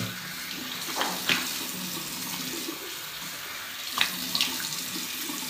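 Water splashes as a man washes his face.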